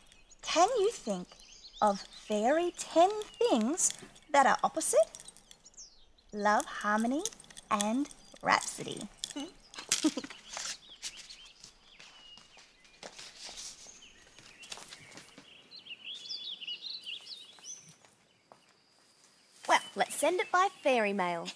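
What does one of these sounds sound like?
A young woman speaks brightly and with animation, close by.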